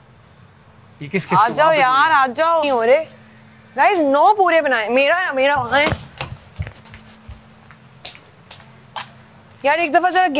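A young woman speaks loudly with animation, close by.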